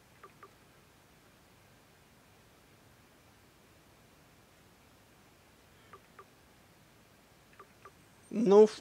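Soft menu clicks tick in pairs.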